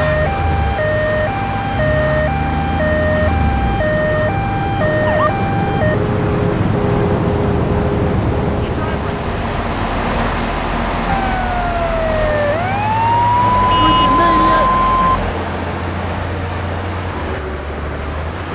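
A vehicle engine rumbles steadily.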